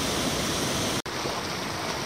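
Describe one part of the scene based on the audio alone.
Water pours loudly over a weir.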